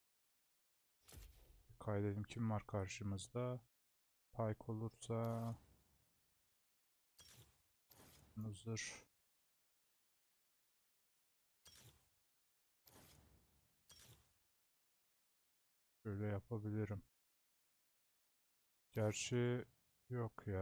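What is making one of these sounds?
A young man talks calmly into a close microphone, in short bursts with pauses.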